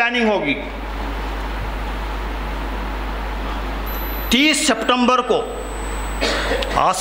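An elderly man speaks slowly into a microphone, heard through a loudspeaker in an echoing hall.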